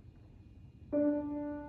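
A grand piano starts to play.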